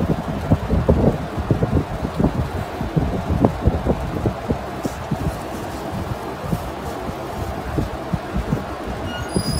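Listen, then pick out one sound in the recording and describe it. Soft, wet paste squelches and squishes as it is squeezed out by hand, up close.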